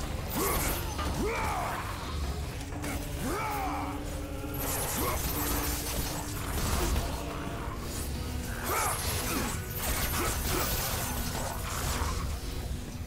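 Creatures shriek and screech as they are struck.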